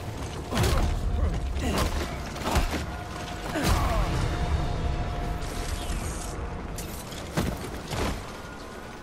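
Heavy blows thud and crack in a close scuffle.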